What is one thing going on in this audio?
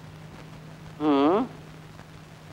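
A second man answers briefly.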